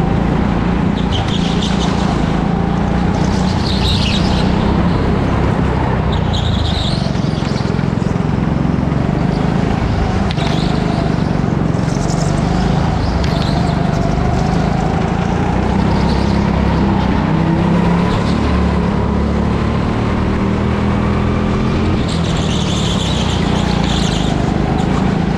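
Go-kart tyres squeal on a smooth floor in the turns.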